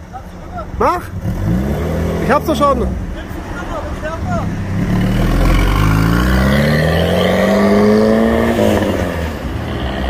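A sports car accelerates away with a rising engine roar.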